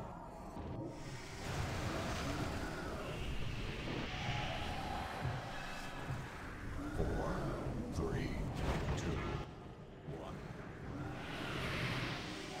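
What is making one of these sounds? Magic spells whoosh and crackle in a busy fight.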